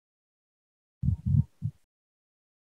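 A man coughs over an online call.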